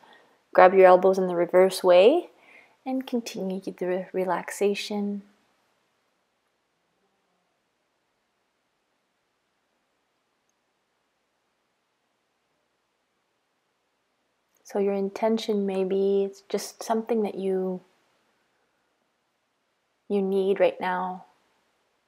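A woman speaks calmly and softly, close to a microphone, with long pauses.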